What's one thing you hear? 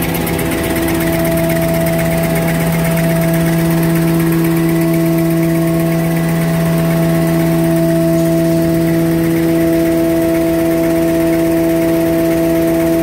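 A large machine hums steadily and whirs with a fast rhythmic clatter.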